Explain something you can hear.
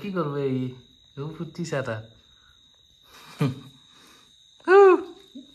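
A woman speaks softly and warmly close by.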